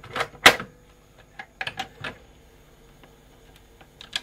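A knob on a cassette deck is turned with faint clicks.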